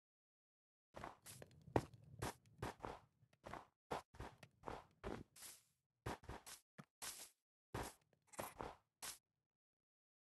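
Footsteps crunch quickly on snow.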